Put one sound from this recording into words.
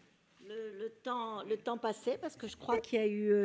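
An elderly woman speaks calmly into a microphone at a lectern, heard through loudspeakers.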